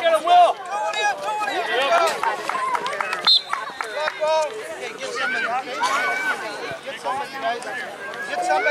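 Young children shout and cheer excitedly outdoors.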